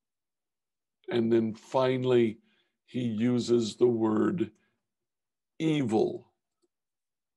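A man speaks calmly and slowly into a microphone.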